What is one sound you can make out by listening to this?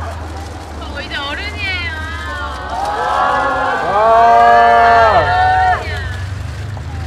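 A young woman laughs and calls out brightly nearby.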